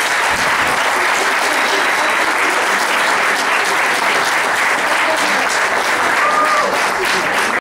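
A small crowd applauds and claps steadily nearby.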